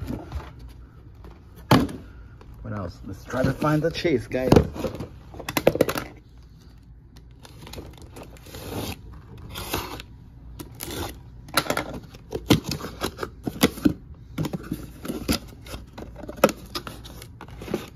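A cardboard box scrapes and thumps as it is handled.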